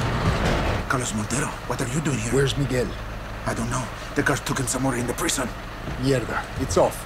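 A man talks urgently nearby.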